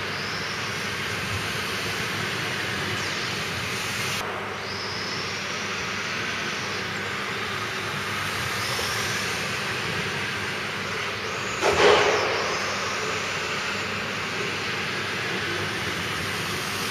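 A small electric motor of a toy car whines, rising and falling in pitch, in a large echoing hall.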